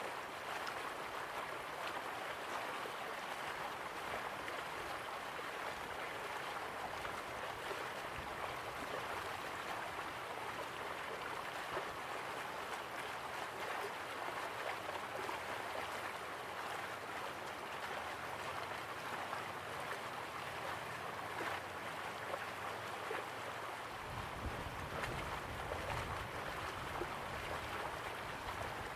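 A waterfall roars and water rushes steadily over rocks.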